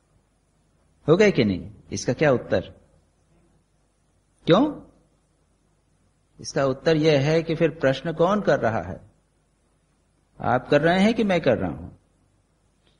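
An elderly man recites slowly in short phrases with pauses, heard through a microphone.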